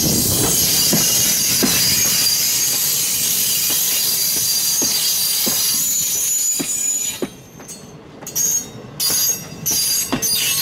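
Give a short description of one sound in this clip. A passenger train rolls past close by with a steady rumble.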